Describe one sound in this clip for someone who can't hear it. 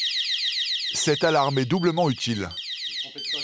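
A man speaks over a beeping alarm.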